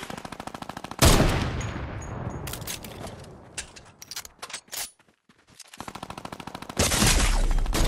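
A rifle fires with a loud, echoing crack.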